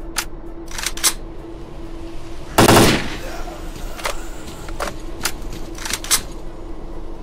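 A rifle clicks and rattles as it is handled and reloaded.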